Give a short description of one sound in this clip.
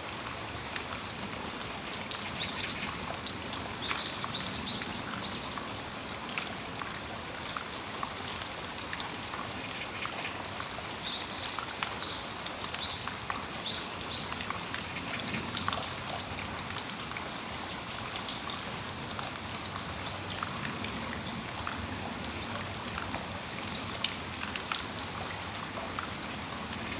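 Raindrops patter and drip on a metal roof.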